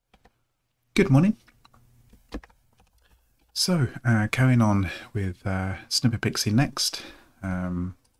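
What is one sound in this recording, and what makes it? A man speaks calmly and closely into a microphone.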